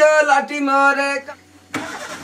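A man sings loudly close by.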